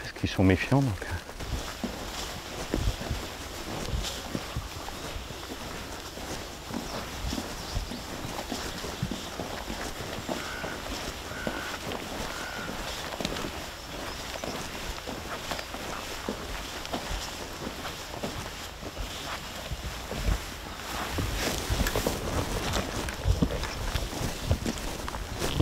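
Footsteps crunch on soft soil.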